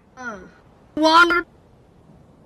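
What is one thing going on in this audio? A man lets out a short, loud shout.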